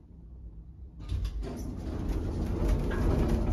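Metal elevator doors slide shut with a rumble.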